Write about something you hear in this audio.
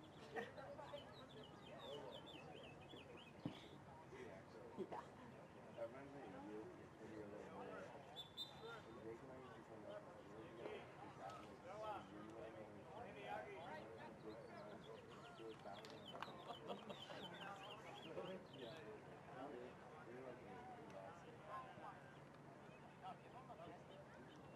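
Several people talk and call out across an open field outdoors.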